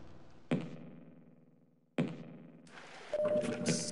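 A gun clicks and rattles as it is swapped for another.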